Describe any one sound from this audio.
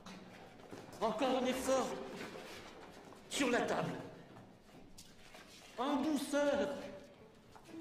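A man shouts urgently in a large echoing room.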